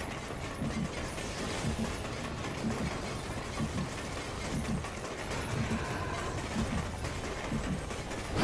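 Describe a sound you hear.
Heavy footsteps thud steadily as a figure runs.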